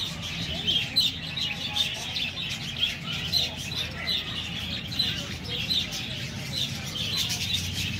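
A flock of budgerigars chatters and warbles.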